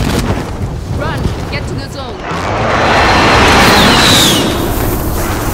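Air rushes loudly past during a fast fall.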